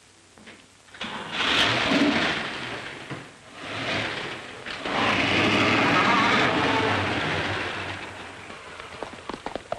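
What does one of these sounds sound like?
A car engine starts and roars as the car pulls away.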